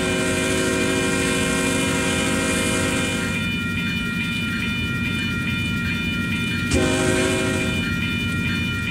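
A train horn blares in long blasts from a distance.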